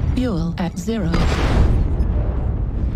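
Cannon fire and explosions boom.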